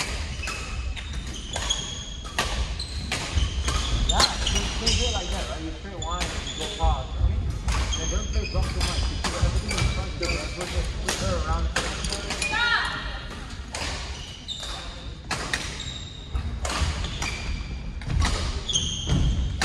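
Young men talk and call out to each other in the echoing hall.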